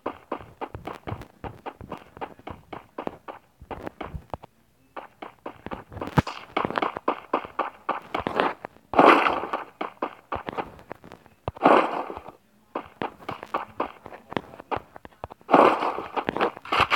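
Footsteps thud quickly and evenly on the ground.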